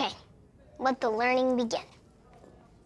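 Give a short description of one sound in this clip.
A young boy speaks cheerfully up close.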